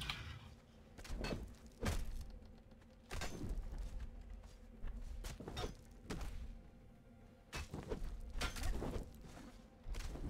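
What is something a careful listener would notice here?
Heavy footsteps thud slowly on hard ground.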